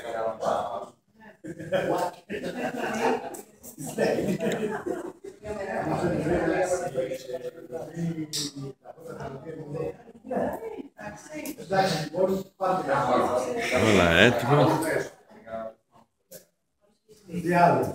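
Several women and men talk nearby in a room.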